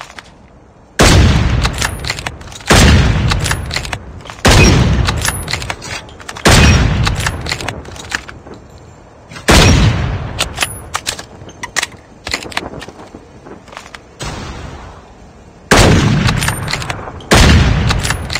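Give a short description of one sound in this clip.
A sniper rifle fires loud booming shots that echo away.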